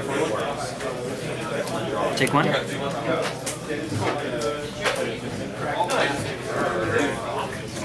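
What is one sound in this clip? Cards tap softly onto a table.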